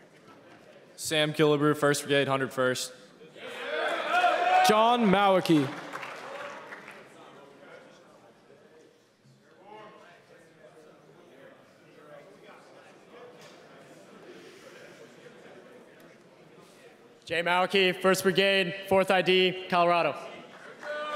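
A young man calls out through a loudspeaker in a large echoing hall.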